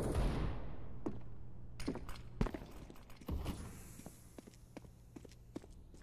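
Footsteps thud steadily on hard ground in a video game.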